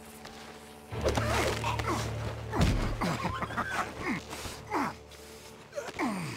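A man gasps and grunts while struggling.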